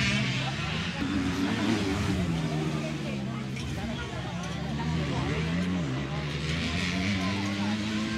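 Two motorcycle engines whine and rev loudly as they race past.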